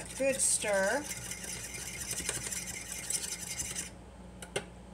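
A fork whisks egg in a metal bowl with quick clinking.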